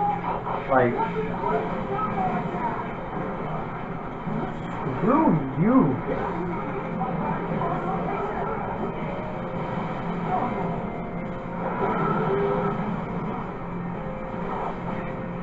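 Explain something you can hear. Fighting game sound effects whoosh and clash from a television.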